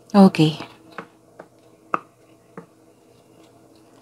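A deck of cards is set down on a soft surface with a light tap.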